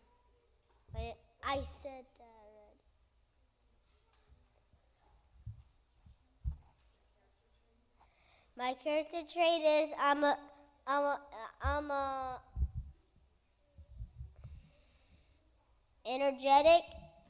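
A young boy speaks into a microphone in a room with some echo, pausing between phrases.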